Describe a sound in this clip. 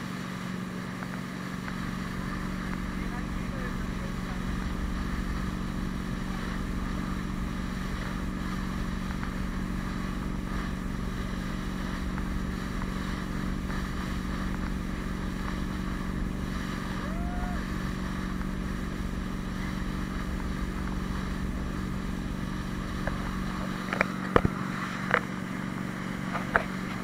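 Water churns and splashes in a boat's wake.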